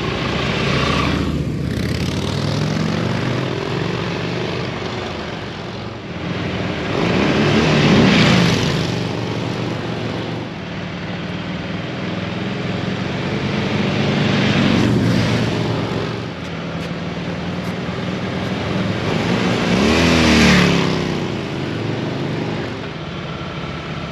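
Motorcycle engines rumble as the motorcycles approach and pass by close.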